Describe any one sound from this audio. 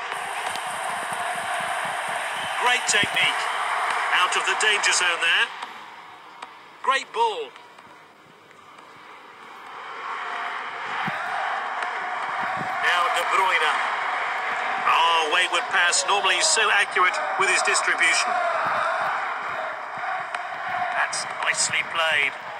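A stadium crowd roars and cheers, swelling and dipping.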